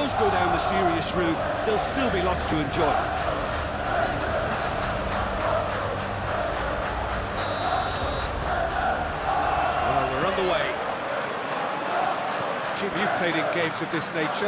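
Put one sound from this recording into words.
A stadium crowd roars and chants.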